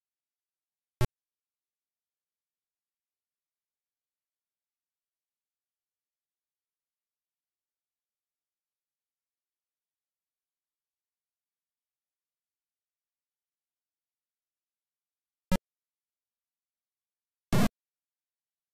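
Short electronic blips sound from a retro computer game.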